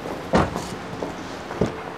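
A car door handle clicks open.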